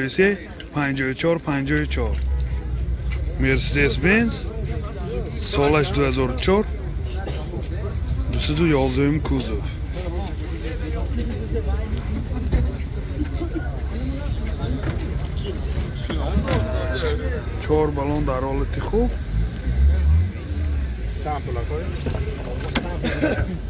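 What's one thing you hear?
Men talk nearby in a crowd, outdoors.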